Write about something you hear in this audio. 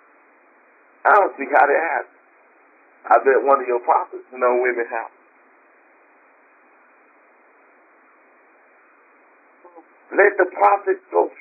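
A woman speaks calmly in short phrases, heard through a thin phone line.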